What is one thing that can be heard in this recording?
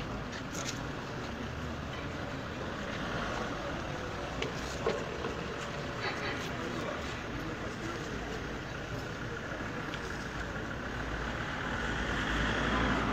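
A crowd of men murmurs and talks outdoors.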